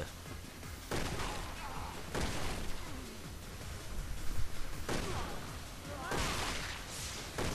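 Pistol shots ring out in bursts.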